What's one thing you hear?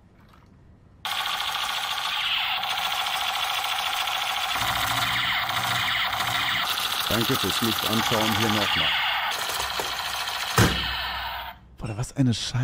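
A toy gun blares loud electronic shooting sounds.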